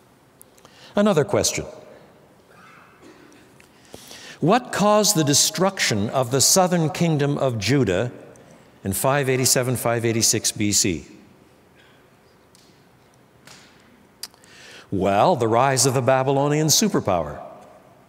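An older man speaks calmly and deliberately into a close microphone, with pauses between phrases.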